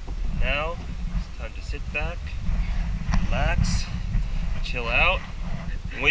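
A young man talks calmly close by, outdoors.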